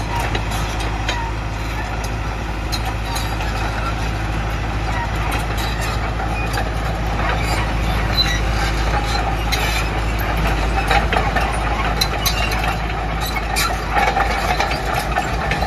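A diesel tracked excavator idles.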